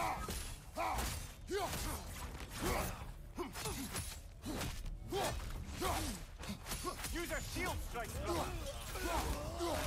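Magic energy crackles and bursts.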